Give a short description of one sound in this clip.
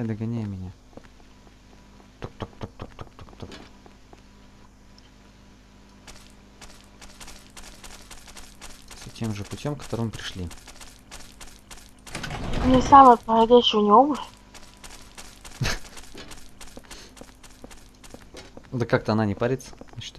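A young man speaks into a close microphone in short bursts.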